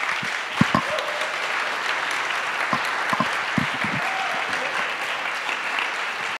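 A crowd of people chatters in a large echoing room.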